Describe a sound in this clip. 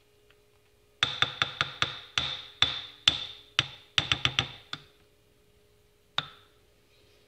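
A spoon knocks and scrapes against the side of a pot.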